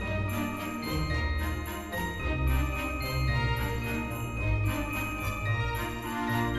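A toy carousel plays a tinkling tune.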